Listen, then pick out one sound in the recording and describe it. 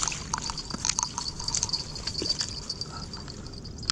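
Water splashes softly as a landing net dips in.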